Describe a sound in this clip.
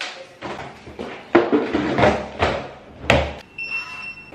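A suitcase rolls and rattles over a hard floor.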